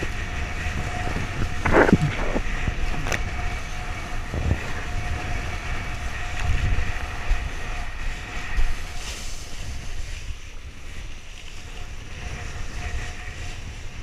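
Water splashes and hisses against a kiteboard cutting through waves.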